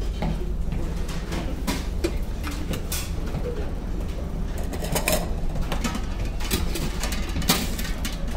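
A metal ladle clinks against a soup pot.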